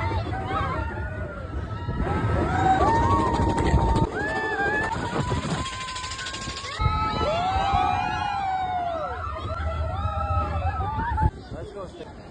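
A roller coaster rattles and roars along its track.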